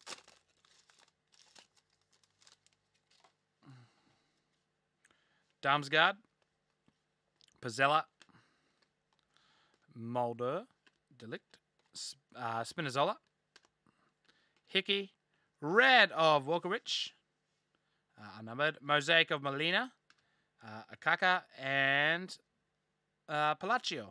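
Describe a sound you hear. Trading cards rustle and slide as they are shuffled.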